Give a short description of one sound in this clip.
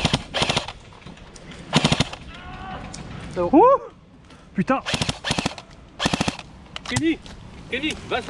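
Gunshots crack sharply nearby, one after another.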